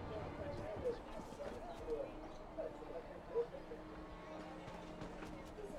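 Footsteps tap on stone paving.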